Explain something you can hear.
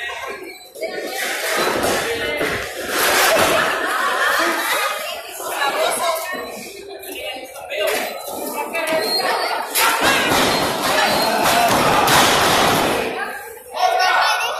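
A crowd cheers and chatters loudly nearby.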